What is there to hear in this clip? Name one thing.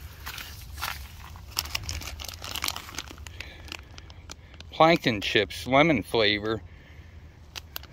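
A plastic snack bag crinkles in a hand.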